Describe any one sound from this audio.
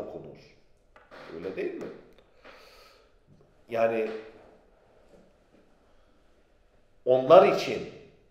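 A middle-aged man speaks with animation close to a microphone, in short bursts with pauses.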